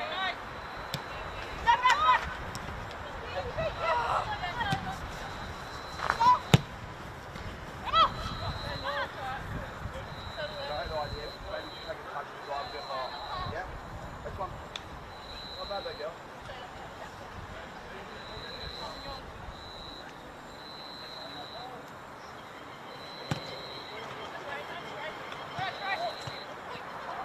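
Players shout to each other across an open outdoor pitch.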